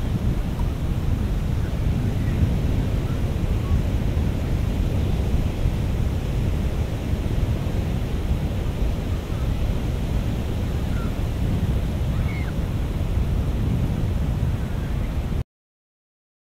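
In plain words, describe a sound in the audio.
Wind blows hard, rumbling across a microphone.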